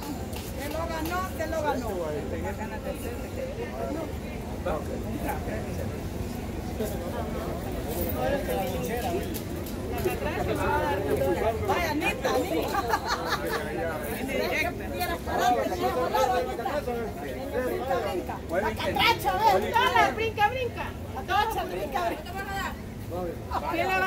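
Several adults chatter in the background outdoors.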